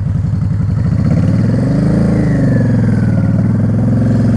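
A motorcycle engine revs up briefly and settles back down.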